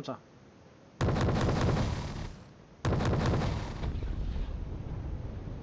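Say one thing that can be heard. Heavy explosions boom and rumble.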